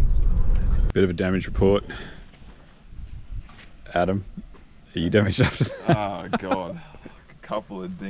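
A man speaks close to the microphone outdoors.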